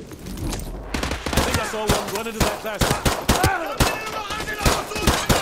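Gunshots fire in rapid bursts close by.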